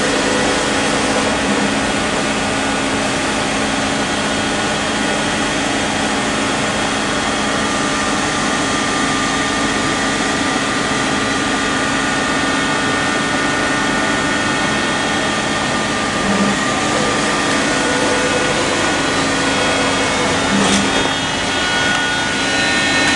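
A machine hums steadily nearby.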